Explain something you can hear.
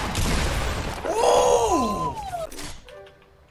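A young man shouts excitedly into a close microphone.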